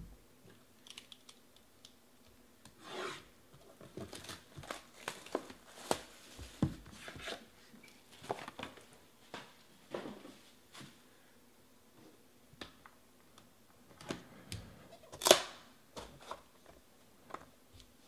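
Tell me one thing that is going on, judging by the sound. Cardboard boxes scrape and rustle as they are handled.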